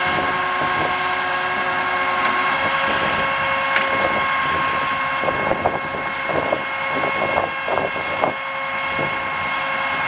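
Metal hooks and chains clank against steel containers.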